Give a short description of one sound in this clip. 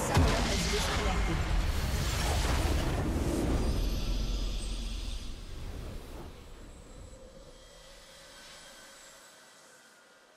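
A triumphant musical fanfare swells and then fades.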